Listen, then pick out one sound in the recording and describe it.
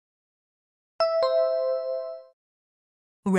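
A bright chime rings once and fades.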